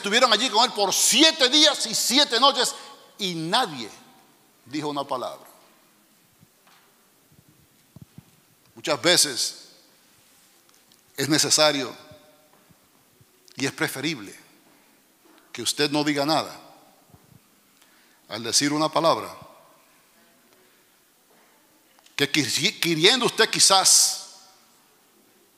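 A man preaches with animation through a microphone in an echoing hall, in loud bursts with pauses.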